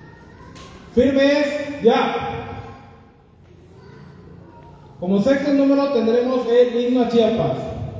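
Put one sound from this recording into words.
Men and women sing together, in long held notes, in an echoing room.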